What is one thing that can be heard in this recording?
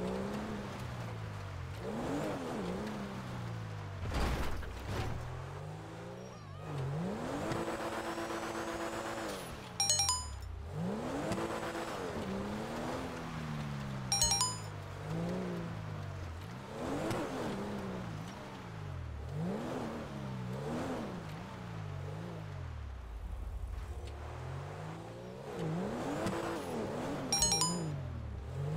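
A sports car engine revs up and down repeatedly as the car skids around.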